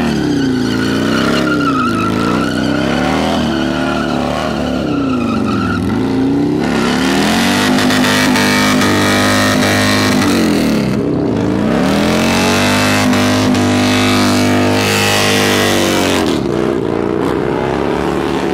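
Tyres screech as they spin on the road.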